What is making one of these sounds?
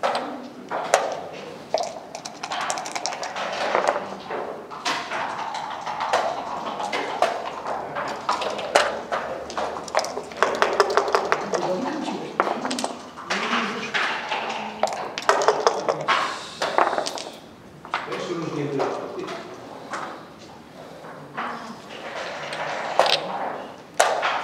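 Game pieces click against a wooden board.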